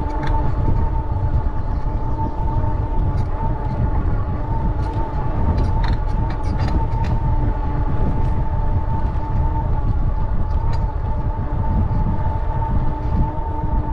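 An electric motor hums with a steady whine.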